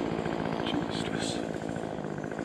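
Pine branches rustle close by.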